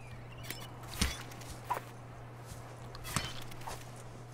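A knife swishes through the air.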